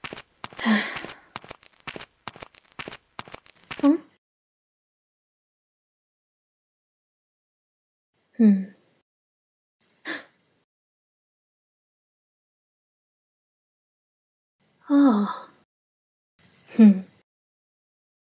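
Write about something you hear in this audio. A young girl speaks softly, close by.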